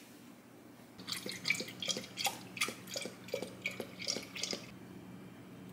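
Liquid pours into a glass jar with a gurgle.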